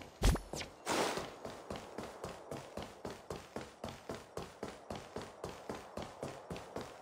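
Quick footsteps patter on stone as someone runs.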